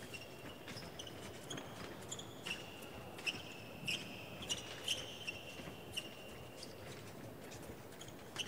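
Sports shoes squeak sharply on a hard floor again and again.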